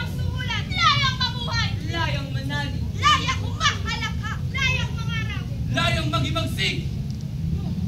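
A group of young voices sings together in a large room.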